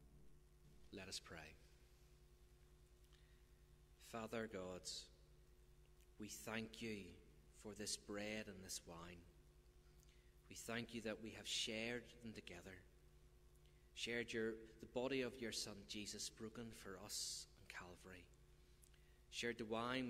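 A man speaks calmly into a microphone, with pauses, in a large echoing hall.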